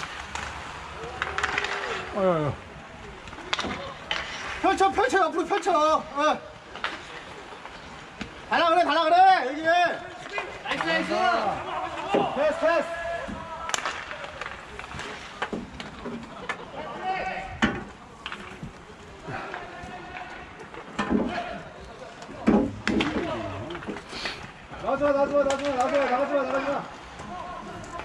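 Young men shout and call out nearby, outdoors.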